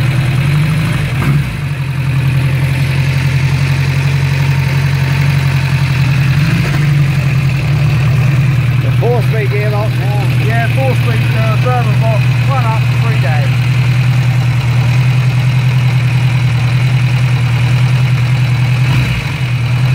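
A motorcycle engine idles with a steady, deep thumping throb close by.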